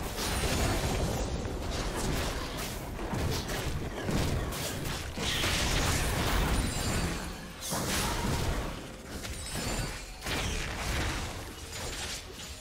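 Video game spell and combat sound effects crackle and burst.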